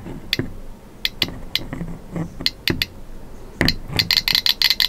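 A metal container knocks and scrapes as something is set into it.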